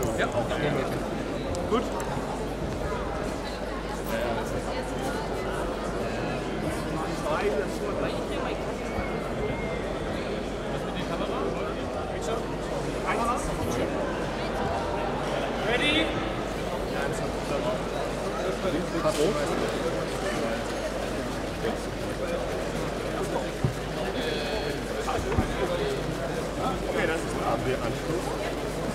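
A crowd murmurs and chatters in a large indoor hall.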